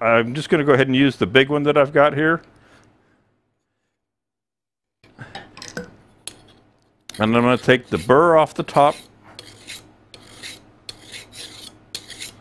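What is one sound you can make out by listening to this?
A metal card file scrapes against the edge of a steel tool.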